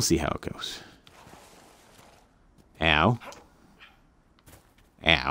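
Footsteps crunch over grass and dirt.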